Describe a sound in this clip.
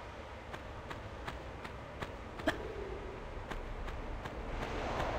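Footsteps run quickly and evenly on a hard floor.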